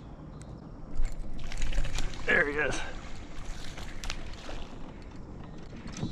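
Water splashes close by as a fish thrashes at the surface.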